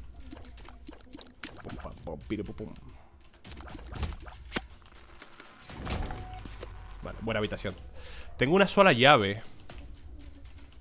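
Short game sound effects pop and click.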